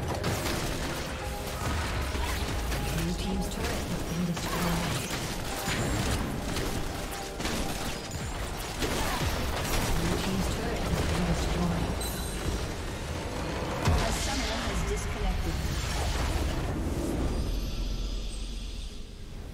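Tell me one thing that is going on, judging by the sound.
Game spell effects crackle, whoosh and explode in a busy battle.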